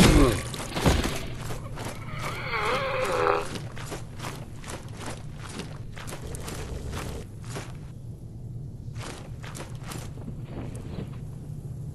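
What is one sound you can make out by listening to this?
Armoured footsteps crunch on the ground.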